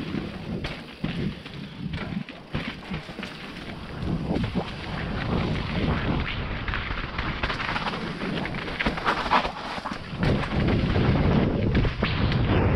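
Wind rushes past steadily, growing louder with speed.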